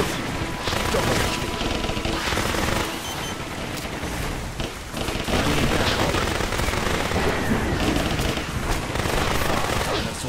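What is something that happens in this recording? Gunshots fire rapidly in bursts.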